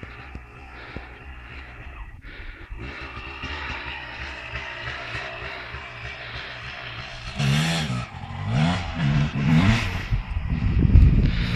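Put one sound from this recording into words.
A dirt bike engine revs and whines in bursts nearby.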